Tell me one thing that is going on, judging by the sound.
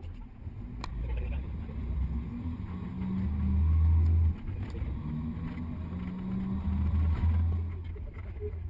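A bus engine hums low and rises and falls in pitch as it drives.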